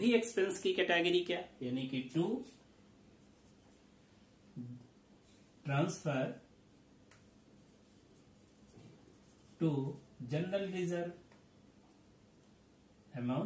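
A man speaks calmly and clearly, in short phrases with pauses.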